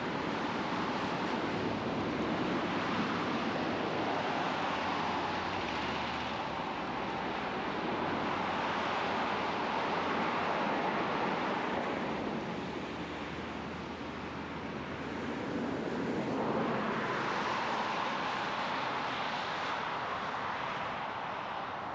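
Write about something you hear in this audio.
Cars drive past on a nearby road, their tyre noise swelling and fading.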